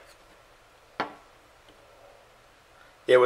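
A metal cylinder knocks on a table.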